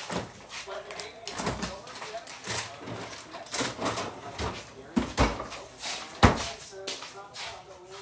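A refrigerator door opens and thumps shut.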